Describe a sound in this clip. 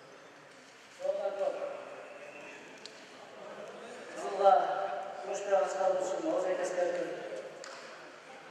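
A man shouts out calls in an echoing hall.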